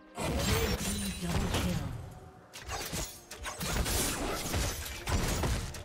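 Game spell effects whoosh and crackle during a fast fight.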